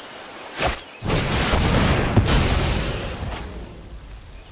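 A magical whoosh swells and fades as a spell is cast.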